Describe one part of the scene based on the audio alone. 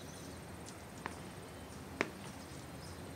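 Footsteps tap on a hard floor indoors.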